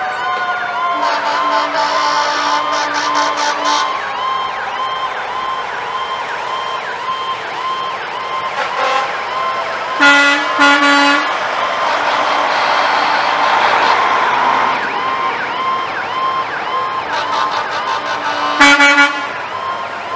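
Truck air horns blast loudly several times.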